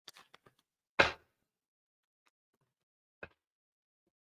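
A playing card slaps softly onto a table.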